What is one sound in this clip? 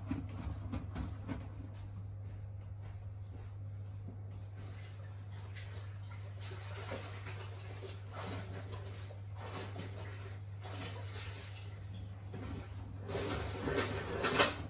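Wet laundry sloshes and tumbles in a washing machine drum.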